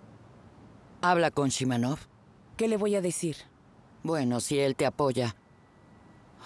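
A middle-aged woman speaks nearby with animation.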